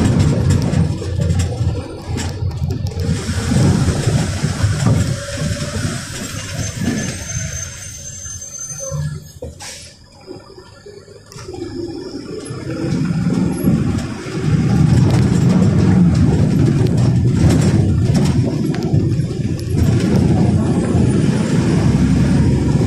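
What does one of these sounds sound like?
A bus engine rumbles low while the bus drives along a street.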